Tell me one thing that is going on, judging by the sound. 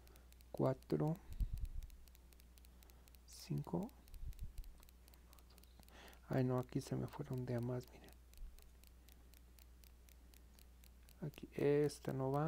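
Knitting needles click softly as yarn is worked.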